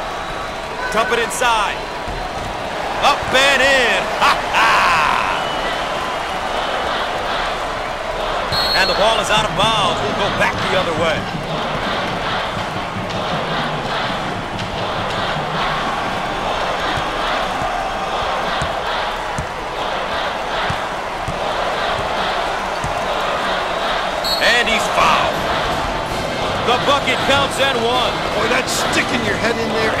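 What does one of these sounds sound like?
A crowd cheers and roars steadily in a large echoing arena.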